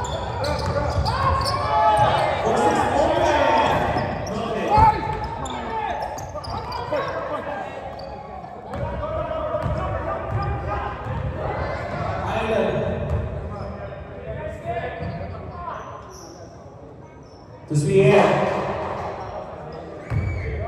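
Men shout and call out to each other in a large echoing gym.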